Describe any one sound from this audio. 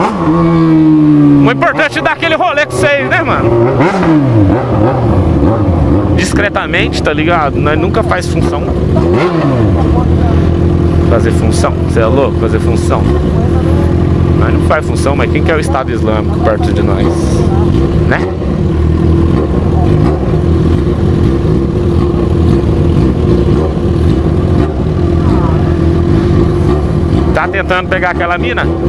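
A motorcycle engine rumbles close by, revving and idling.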